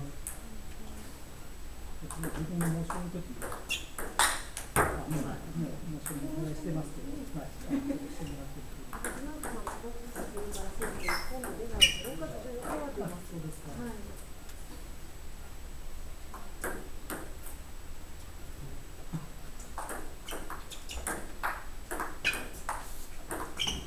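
A table tennis ball clicks back and forth on paddles and the table.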